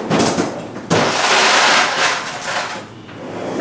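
Liquid pours into a cup.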